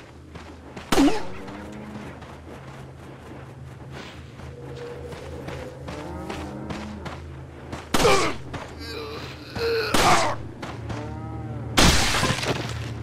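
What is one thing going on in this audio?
A pistol fires single loud shots.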